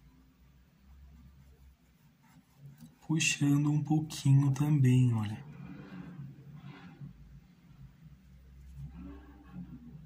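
A paintbrush softly brushes across canvas.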